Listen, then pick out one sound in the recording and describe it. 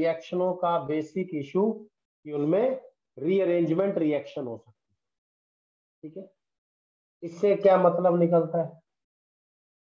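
A man explains calmly into a close microphone.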